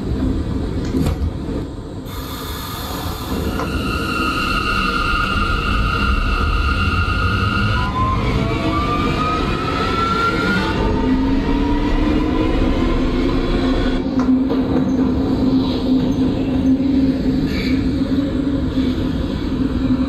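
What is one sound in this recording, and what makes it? A subway train rumbles along the tracks through a tunnel.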